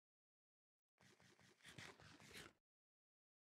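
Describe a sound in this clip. Loud munching and crunching sounds of eating.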